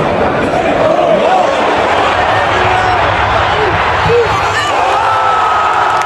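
Nearby fans shout and cheer with excitement.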